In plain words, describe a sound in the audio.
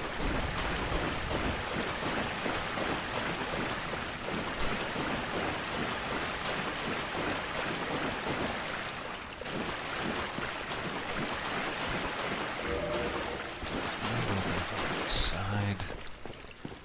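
Footsteps splash through shallow water in an echoing tunnel.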